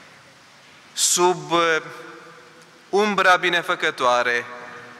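A man speaks slowly and solemnly into a microphone in a large echoing hall.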